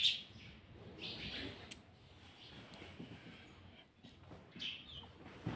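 A parrot chirps softly.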